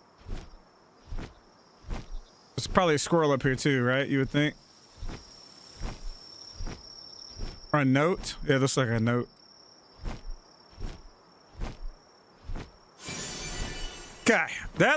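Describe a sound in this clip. Large wings flap in a steady rhythm.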